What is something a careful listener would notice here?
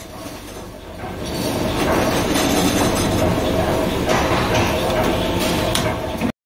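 Machinery hums and rattles steadily nearby, growing louder.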